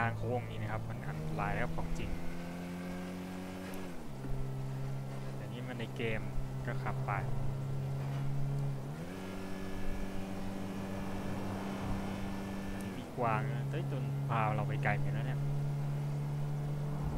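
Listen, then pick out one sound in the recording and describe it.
A car engine hums steadily, dropping in pitch as it shifts gears.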